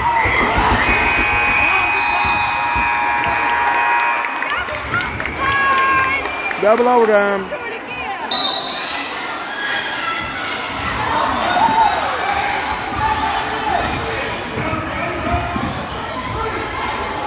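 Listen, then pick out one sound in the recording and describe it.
Spectators chatter and cheer in an echoing hall.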